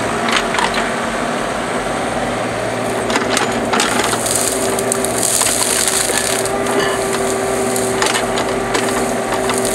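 Dry brush and branches crackle and snap as an excavator arm pushes through them.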